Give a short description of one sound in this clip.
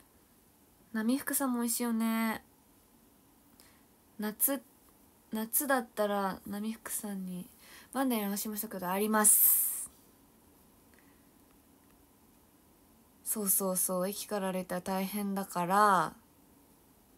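A young woman speaks close to a microphone, with animation and pauses.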